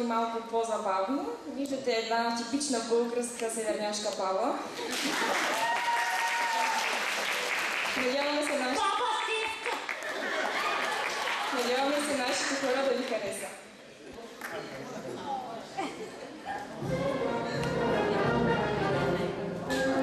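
Young women sing together into microphones.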